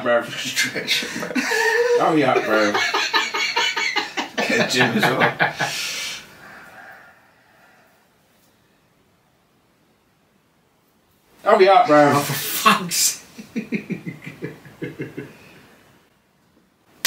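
Several men laugh loudly close to microphones.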